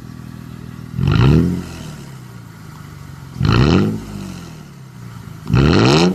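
A muffler-deleted V6 SUV engine revs in short bursts.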